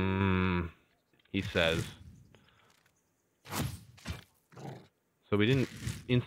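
Magic spells zap in short bursts.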